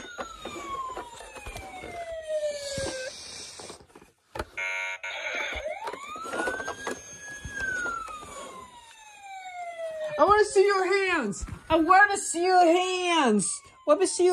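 A toy police siren wails electronically, rising and falling.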